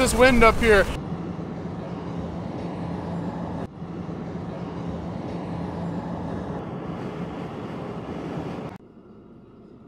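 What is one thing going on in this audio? A car drives along a road with a steady low hum.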